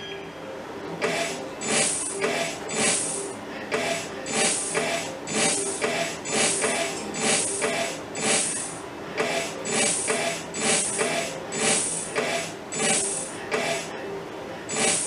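A slot machine beeps in a quick repeating rhythm as its light steps around the wheel.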